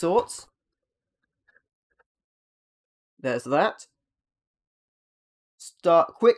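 A man speaks calmly and close by, in short bursts.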